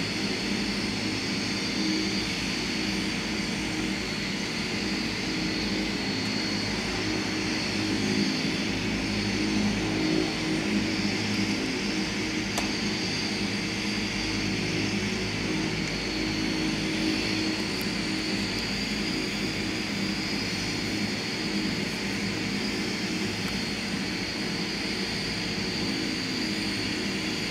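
A turboprop airliner's engines drone steadily close by.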